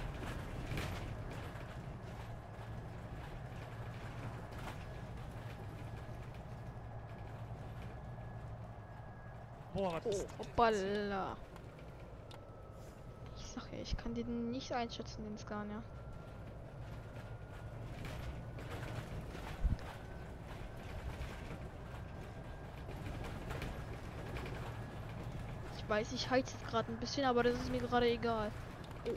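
A bus engine hums low and steady while driving.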